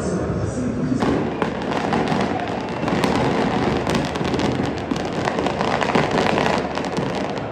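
Fireworks crackle and pop rapidly in a stadium.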